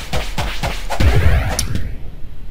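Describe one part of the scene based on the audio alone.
A burst of sparkling sound pops as something shatters.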